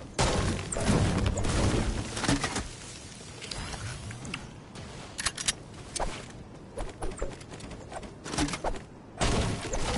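A pickaxe swings and thuds.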